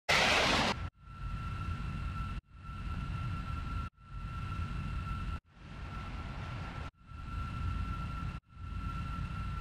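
A jet engine roars steadily with a low rumble and a thin whine.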